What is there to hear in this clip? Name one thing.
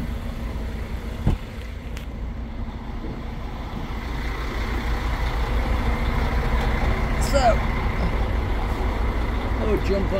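Footsteps scuff on rough concrete outdoors.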